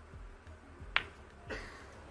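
Snooker balls click together on the table.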